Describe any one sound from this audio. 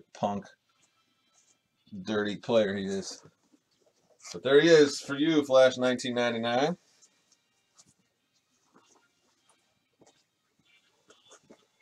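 Fabric rustles as a jersey is handled.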